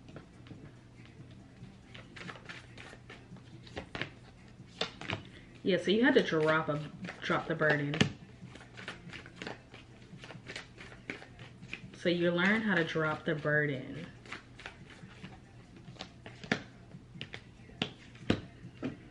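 Paper cards flick and tap as a young woman shuffles them.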